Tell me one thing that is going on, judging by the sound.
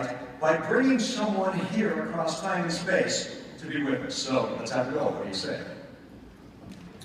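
A man speaks with animation through a loudspeaker in a large hall.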